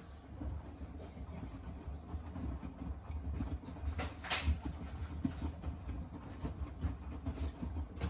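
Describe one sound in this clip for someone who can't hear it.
A washing machine drum turns with a low rumble.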